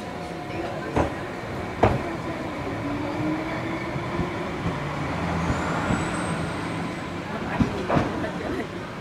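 Train wheels clack over the rail joints.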